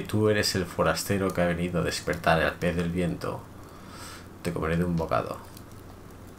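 A man reads aloud with animation into a close microphone.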